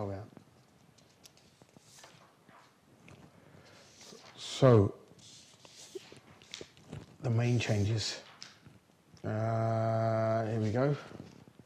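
Sheets of paper rustle in a man's hands.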